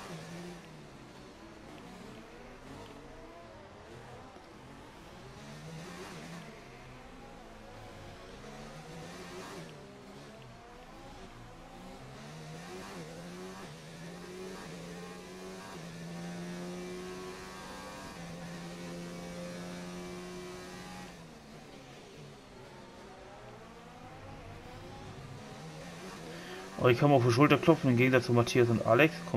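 A racing car engine screams, revving up and down through the gears.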